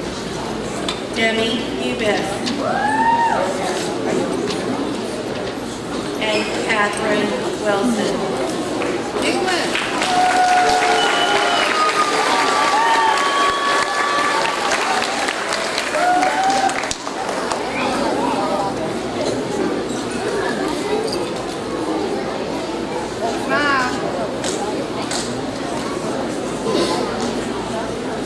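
A crowd of children chatters and calls out in a large echoing hall.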